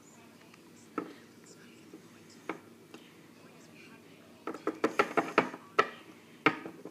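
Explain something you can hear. Small plastic toys tap and click against a hard surface.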